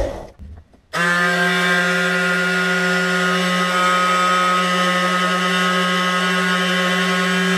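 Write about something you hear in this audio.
A handheld electric sander buzzes steadily.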